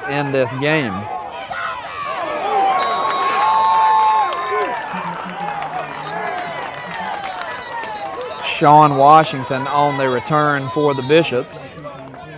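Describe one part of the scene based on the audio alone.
A crowd of young men cheers and shouts nearby, outdoors.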